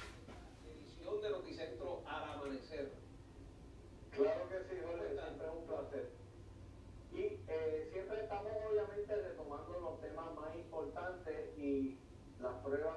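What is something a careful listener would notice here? A man talks on a television, heard through its loudspeaker across a small room.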